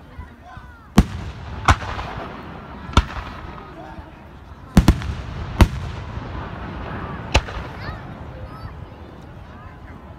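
Fireworks sparkle and crackle faintly after the bursts.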